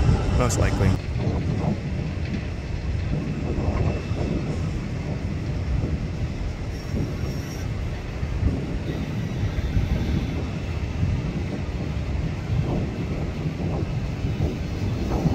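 A distant jet airliner roars as it comes in to land.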